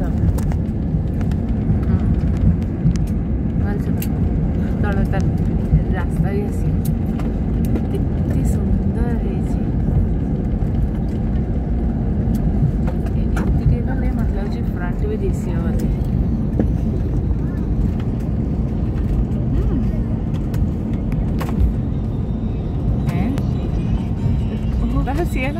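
A jet engine roars steadily, heard from inside an aircraft cabin.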